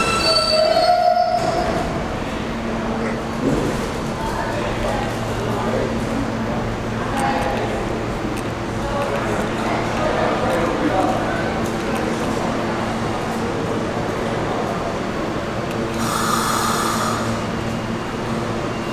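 A subway train rumbles and clatters along the tracks in an echoing underground station.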